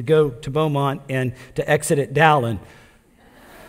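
An older man speaks with animation into a microphone in a large echoing hall.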